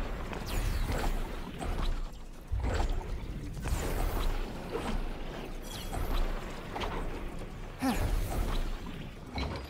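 Magical sparkles shimmer and twinkle in bursts.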